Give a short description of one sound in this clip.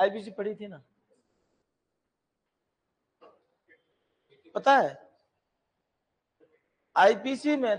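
A middle-aged man speaks with animation, in short bursts with pauses.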